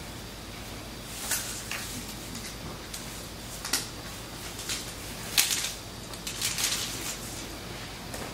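A cloth rustles softly.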